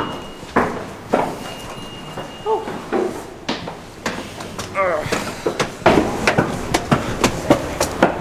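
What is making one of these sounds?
A young man talks casually close by.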